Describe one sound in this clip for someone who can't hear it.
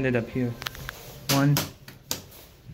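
A button clicks as it is pressed.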